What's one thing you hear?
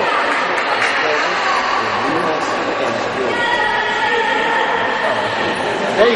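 Young girls shout and call out across a large echoing hall.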